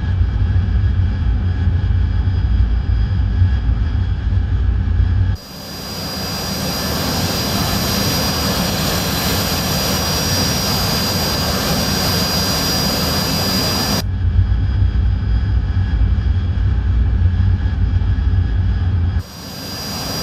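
A jet engine rumbles low and steady, heard muffled from inside.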